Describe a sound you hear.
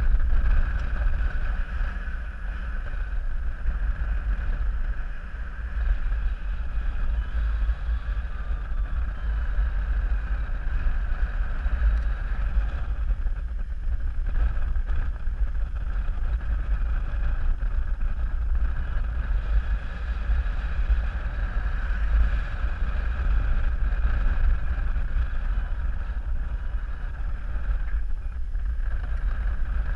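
Strong wind rushes and buffets steadily, as if in flight.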